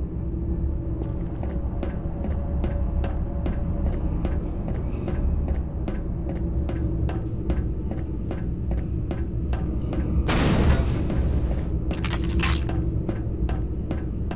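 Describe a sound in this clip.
Footsteps tap at a steady walking pace on a hard floor.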